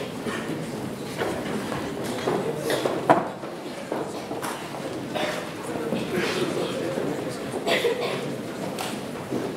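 A piano plays along with the choir.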